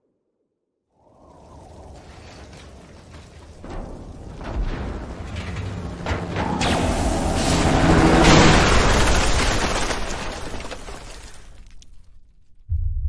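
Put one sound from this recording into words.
A deep explosion booms and rumbles, swelling louder and then fading away.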